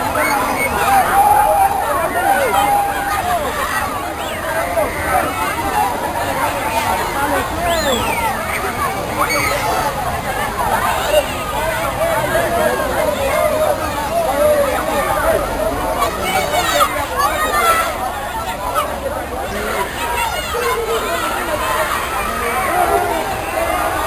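A large crowd chatters and shouts nearby, outdoors.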